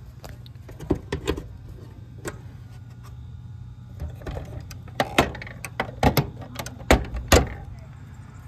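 A plastic cover clicks and knocks.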